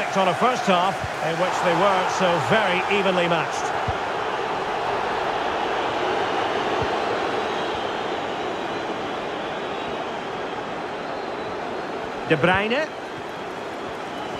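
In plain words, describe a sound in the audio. A large crowd murmurs steadily in a big open stadium.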